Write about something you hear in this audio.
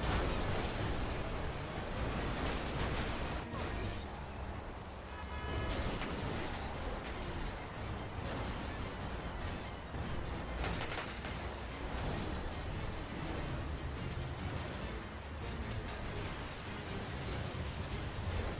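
Strong wind roars and howls steadily.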